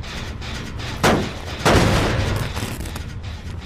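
A metal machine clanks and rattles loudly as it is struck.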